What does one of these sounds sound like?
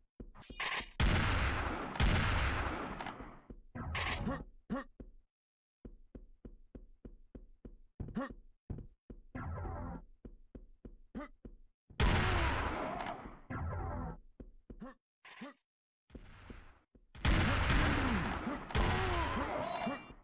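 A shotgun fires loud booming blasts that echo.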